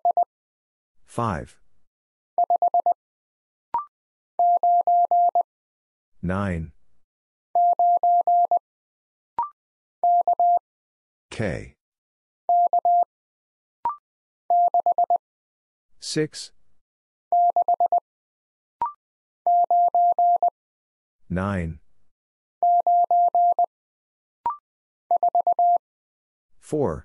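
Short, steady electronic beeps tap out Morse code in quick bursts.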